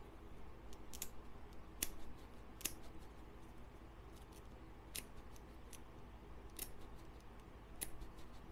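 Foil crinkles softly.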